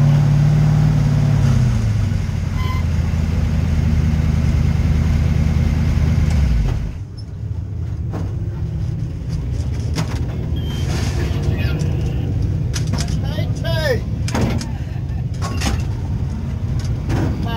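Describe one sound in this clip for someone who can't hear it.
A race car engine idles close by with a loud, deep rumble, then drops to a quieter idle.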